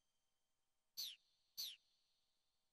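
Menu blips chirp in quick falling tones.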